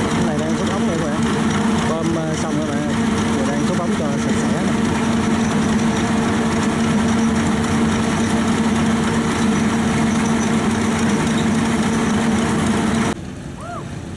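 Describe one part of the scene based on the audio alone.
Water churns and splashes.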